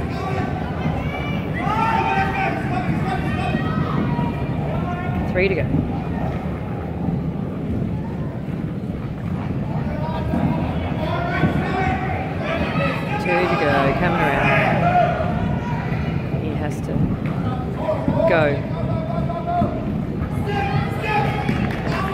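Children's voices chatter and call out across a large echoing hall.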